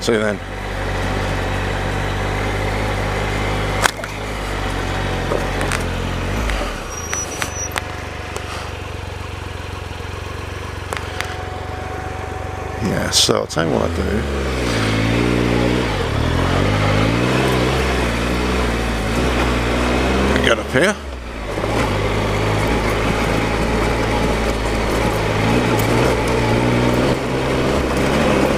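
A motor hums steadily, rising and falling in pitch as the bike speeds along.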